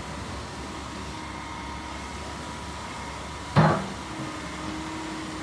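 An excavator's diesel engine hums steadily close by.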